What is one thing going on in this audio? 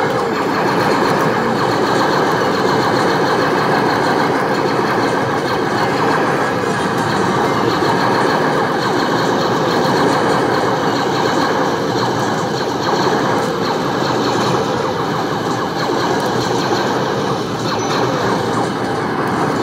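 Loud arcade game sound effects and music play from a machine's speakers.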